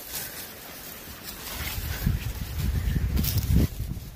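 A dog pads through dry leaves and brush.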